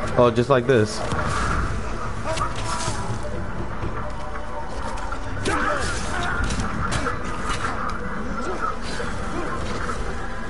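Swords clash and ring in quick strikes.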